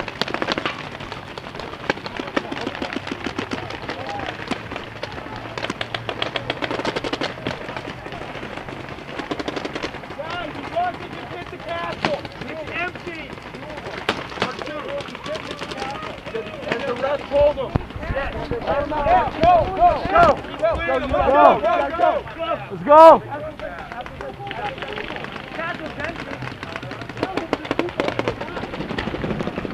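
Paintball markers fire in rapid bursts of sharp pops.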